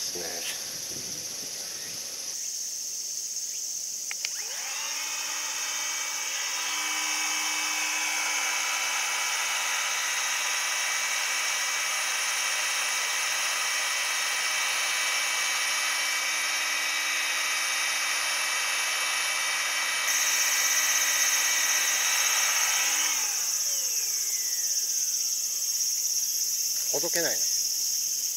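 Honeybees buzz softly around a hive.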